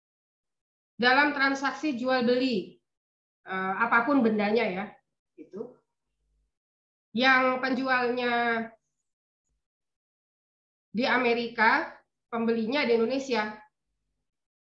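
A young woman speaks calmly over an online call, in short phrases with pauses.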